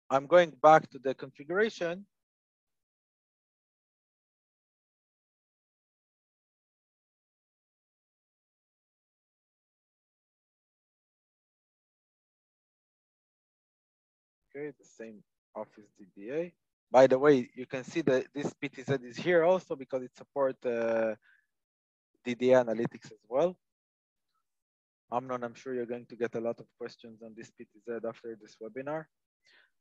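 A young man speaks calmly, close to a headset microphone.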